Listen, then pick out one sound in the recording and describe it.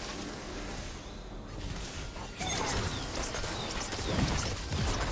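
Fantasy battle sound effects clash and burst in quick succession.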